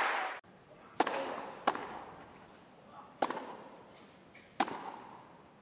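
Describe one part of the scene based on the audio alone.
A tennis ball is hit back and forth with sharp thwacks.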